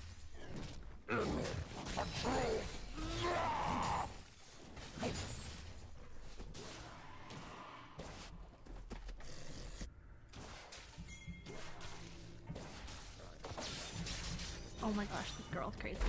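A young woman talks into a microphone with animation, close by.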